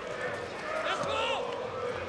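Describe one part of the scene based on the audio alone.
A small crowd chants in the distance outdoors.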